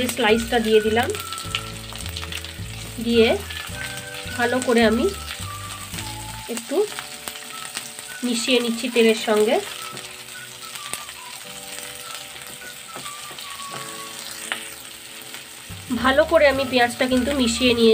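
Onions sizzle in hot oil in a pan.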